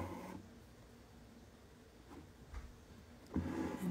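Thread rasps softly as it is pulled through taut fabric.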